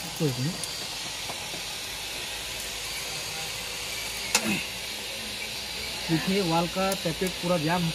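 Metal engine parts clink and tap under a wrench.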